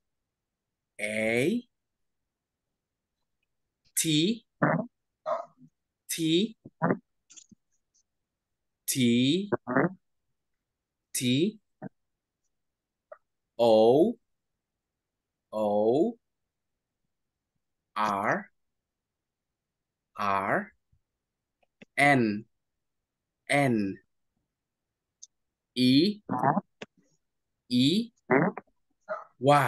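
A young man speaks with animation over an online call, in short bursts with pauses.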